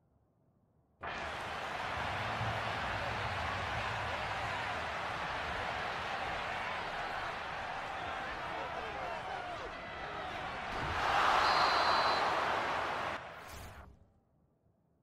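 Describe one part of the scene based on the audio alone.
A large stadium crowd roars steadily, swelling loudly toward the end.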